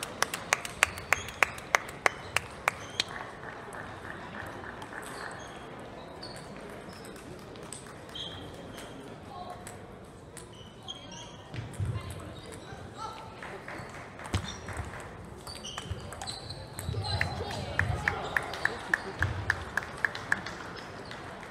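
Ping-pong balls click rapidly on paddles and tables nearby.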